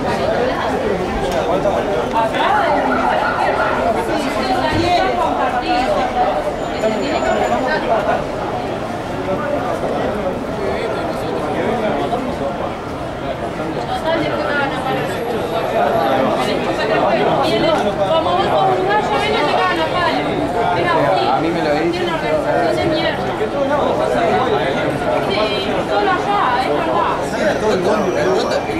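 A crowd of men chatter and call out loudly close by, outdoors.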